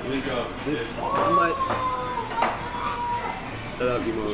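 Glasses clink together with a ringing tone.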